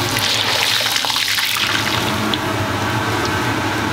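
A wire strainer clinks against the rim of a wok.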